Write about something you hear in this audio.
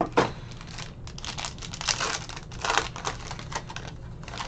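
Foil wrapping crinkles and tears as it is ripped open.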